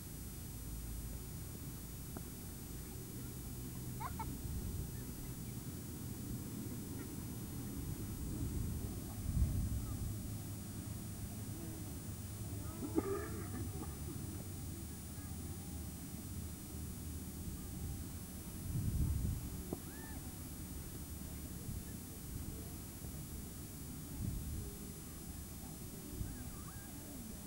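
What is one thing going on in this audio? Wind rumbles across an open field.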